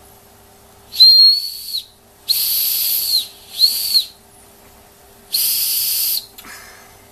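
A toy steam boiler's whistle shrieks in short, hissing blasts.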